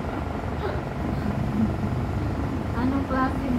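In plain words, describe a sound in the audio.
A young woman talks playfully close by.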